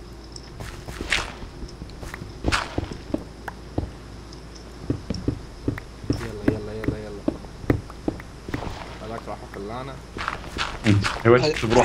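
Digging strokes knock and crunch repeatedly on stone and dirt.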